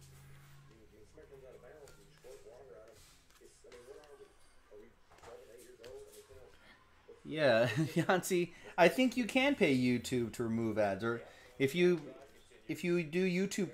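Trading cards shuffle and slide between fingers.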